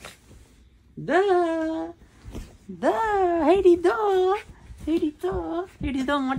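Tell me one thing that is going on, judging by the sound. A young woman laughs and squeals playfully close by.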